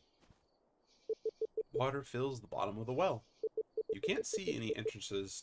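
Short electronic beeps tick rapidly in quick bursts.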